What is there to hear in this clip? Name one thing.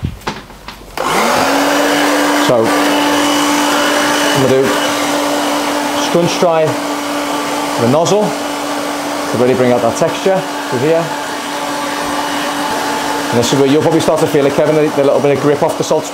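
A hair dryer blows with a steady roar.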